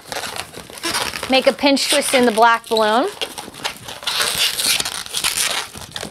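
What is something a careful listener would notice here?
Balloons rub and squeak against each other.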